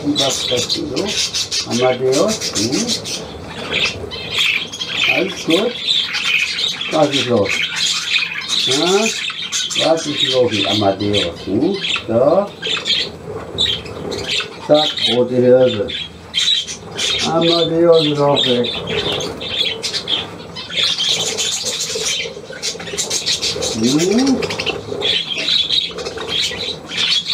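Budgerigars chatter and chirp throughout.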